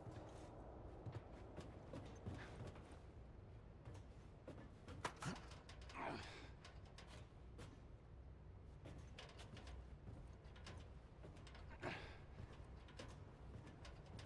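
Footsteps clank on metal grating.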